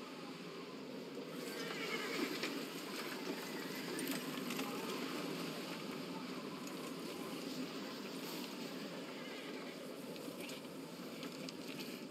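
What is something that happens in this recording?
Wooden wagon wheels roll and creak over snow.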